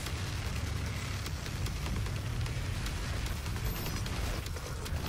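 An energy gun fires in rapid bursts.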